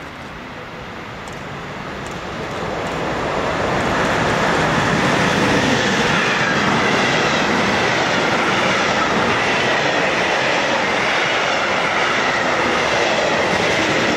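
A freight train approaches and roars past close by, wheels clattering on the rails.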